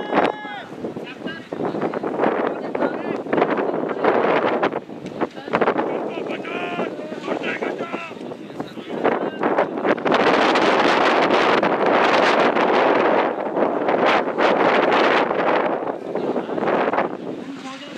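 Wind gusts loudly across an open field.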